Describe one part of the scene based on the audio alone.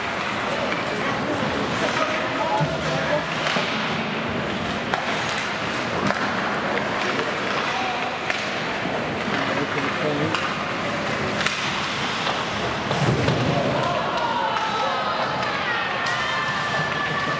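Hockey sticks clack against a puck.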